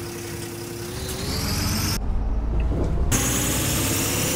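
A bus pulls away, its engine revving up.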